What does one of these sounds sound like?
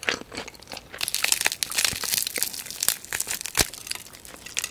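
Hands tear apart crispy fried chicken.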